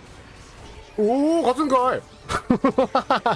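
Magic spells whoosh and burst with bright chiming effects.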